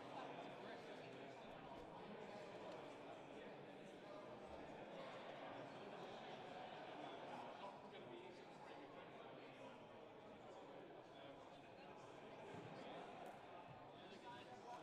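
A crowd of men and women chatters nearby, in a room that echoes.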